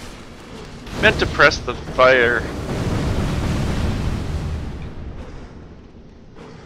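A magic spell bursts with a bright ringing whoosh and a low rumble.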